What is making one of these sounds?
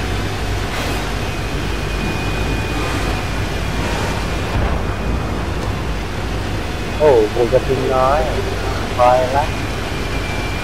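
A tank engine rumbles low and steady as the tank drives over sand.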